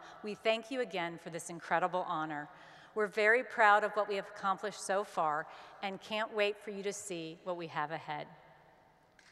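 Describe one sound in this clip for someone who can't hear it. A woman speaks warmly into a microphone.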